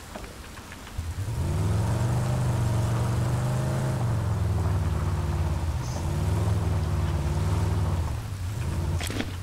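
A vehicle engine rumbles loudly as it drives.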